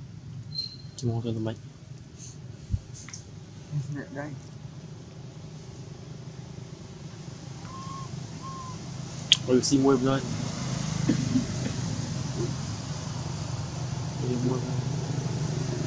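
A baby monkey squeaks and cries nearby.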